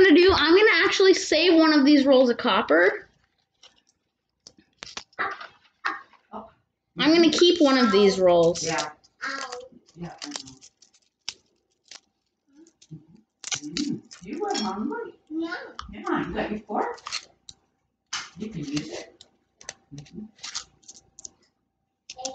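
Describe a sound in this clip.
Pennies clink together as a hand sorts them.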